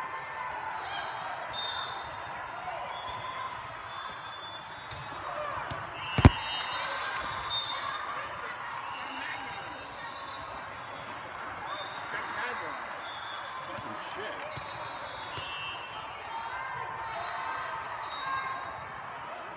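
Referee whistles blow sharply in a large echoing hall.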